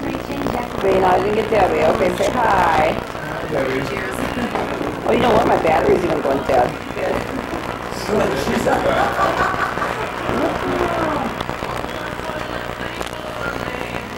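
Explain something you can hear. Several adults talk in the background.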